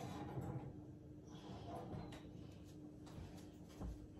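An oven door opens and shuts.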